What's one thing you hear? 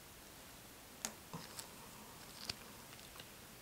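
Gloved hands turn a small object over with faint taps and rustles.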